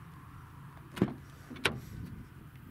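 A car door latch clicks as the door is pulled open.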